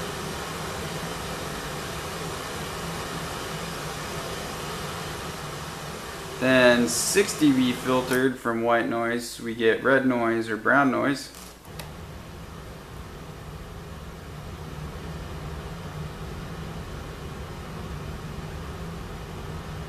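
A synthesizer plays a low, steady droning hum.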